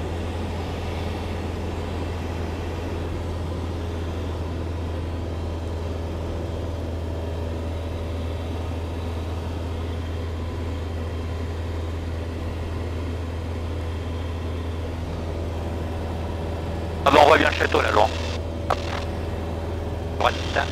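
A small plane's engine drones steadily throughout.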